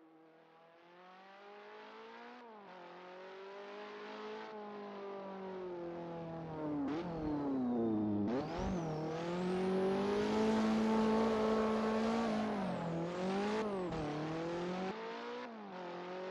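A racing car engine roars as it approaches, growing steadily louder, then eases off.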